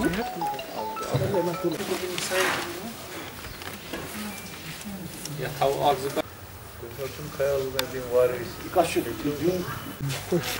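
A man speaks calmly and steadily, close to a microphone.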